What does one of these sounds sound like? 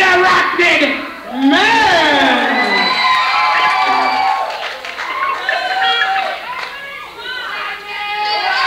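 A man sings loudly on a stage through a microphone.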